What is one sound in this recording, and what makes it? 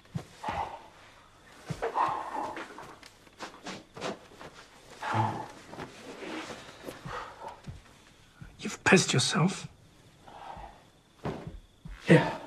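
A man speaks quietly nearby.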